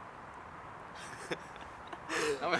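A teenage boy laughs softly.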